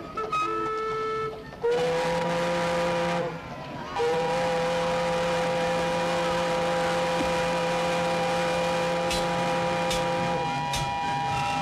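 A steam calliope plays loud, shrill whistling notes.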